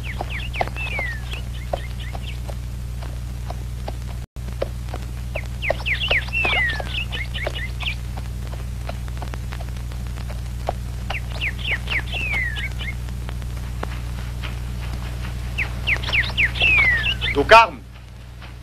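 A horse's hooves thud softly as it walks over grassy ground.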